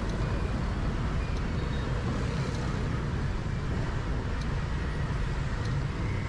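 Traffic rumbles steadily along a busy city street.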